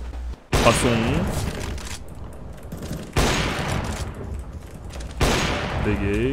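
A rifle fires single loud shots that ring out with an echo.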